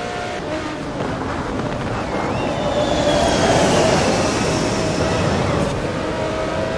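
Tyres screech briefly as a racing car corners hard.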